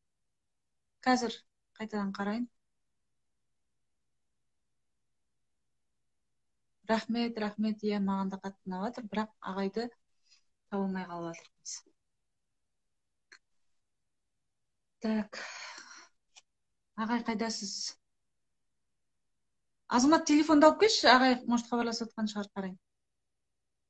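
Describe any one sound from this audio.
A woman speaks calmly and close to a microphone, in short bursts with long pauses.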